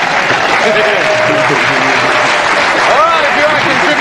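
A large crowd laughs loudly.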